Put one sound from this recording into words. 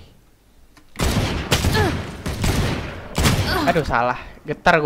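Gunshots ring out in quick bursts.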